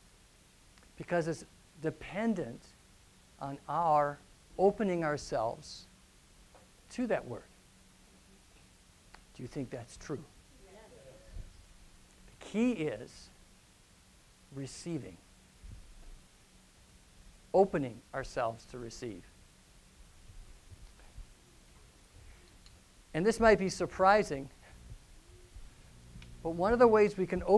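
A middle-aged man speaks with animation through a clip-on microphone, pausing often.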